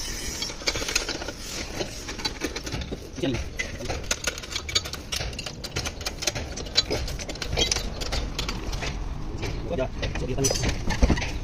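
Metal parts clink and knock as hands work on an engine.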